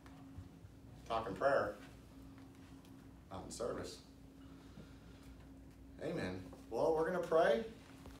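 A middle-aged man speaks calmly and nearby, with pauses between phrases.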